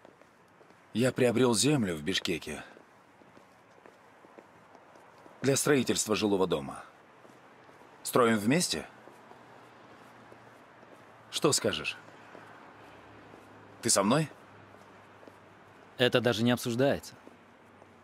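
A man speaks calmly, close by, in short phrases.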